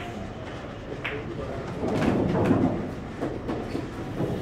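Billiard balls knock against each other.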